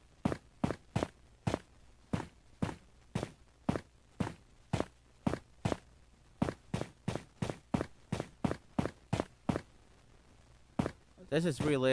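Footsteps tread steadily on rock.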